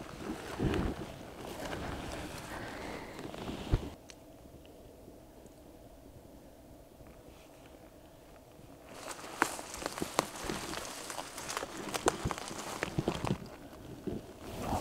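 Gear rustles and brushes against clothing.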